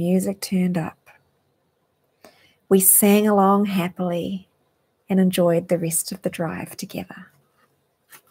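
A woman speaks softly and warmly into a close microphone.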